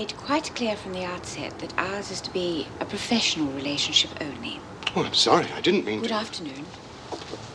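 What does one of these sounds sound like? A middle-aged woman speaks firmly, close by.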